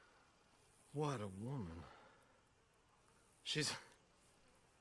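A young man speaks briefly in a calm voice.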